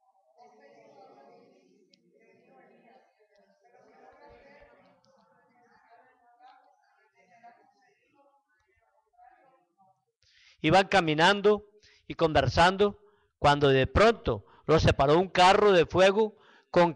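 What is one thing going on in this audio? A man speaks calmly through a microphone and loudspeakers in an echoing hall.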